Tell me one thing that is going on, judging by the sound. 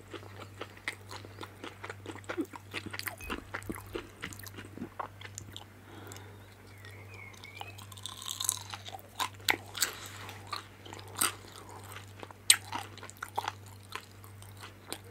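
A woman chews food close to a microphone with wet, crunchy sounds.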